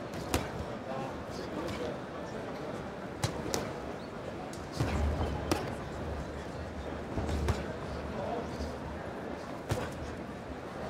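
Punches thud against gloves and bodies.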